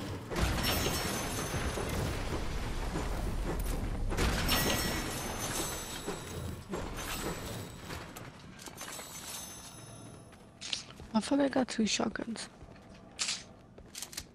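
Gold bars clink and chime as they are picked up.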